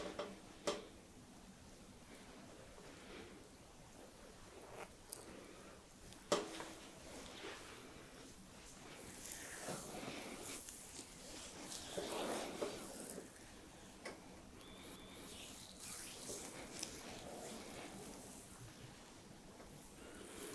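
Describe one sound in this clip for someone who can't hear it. Hands softly rub and stroke skin and hair close by.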